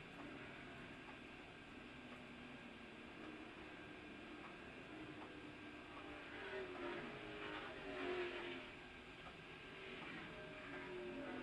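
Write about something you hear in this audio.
A race car engine roars steadily from inside the cabin.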